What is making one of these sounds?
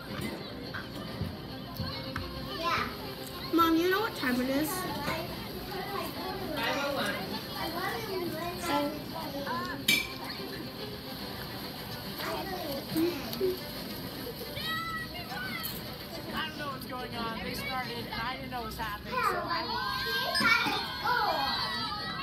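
A young girl talks close by, casually.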